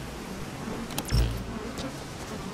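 A deep whoosh sounds as a menu closes.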